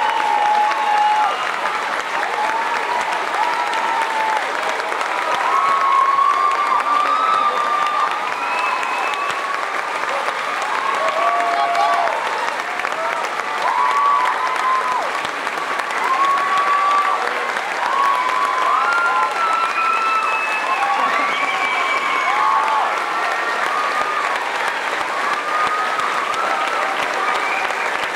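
A large crowd applauds loudly in a big echoing hall.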